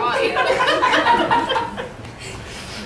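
Another young woman speaks close to a microphone.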